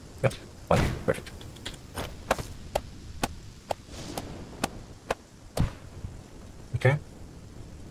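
Footsteps rustle and crunch through undergrowth.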